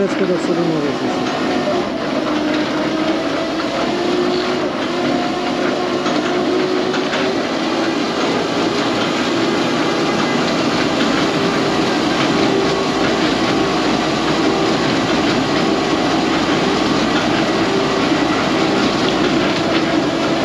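Road noise roars steadily as a truck drives along.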